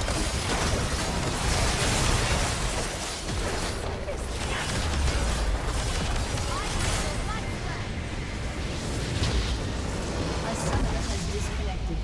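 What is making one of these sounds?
Game spells crackle and blast in a busy fight.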